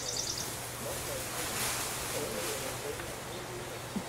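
Hay and straw rustle and scatter as a gorilla throws them.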